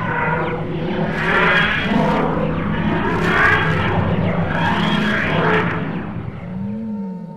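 A machine wheezes and groans loudly in rising and falling waves.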